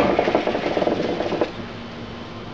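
Water bubbles and gurgles in a hookah.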